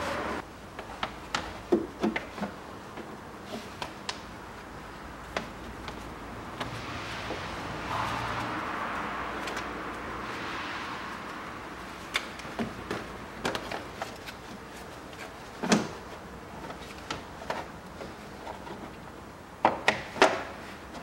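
Gloved hands knock and clatter against parts under a car hood.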